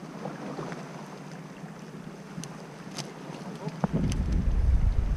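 Small metal pliers click against a fishing hook.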